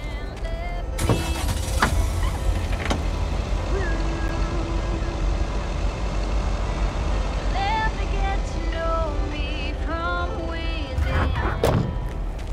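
A van engine rumbles steadily as it drives.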